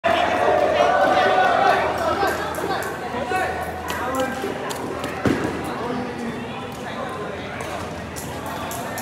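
Badminton rackets hit shuttlecocks with sharp pings.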